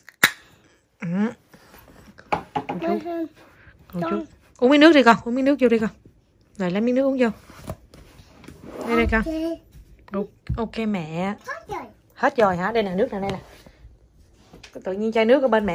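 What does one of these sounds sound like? A toddler girl babbles and chatters loudly close by.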